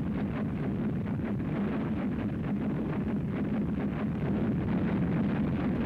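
A large fire roars with a deep, steady rumble.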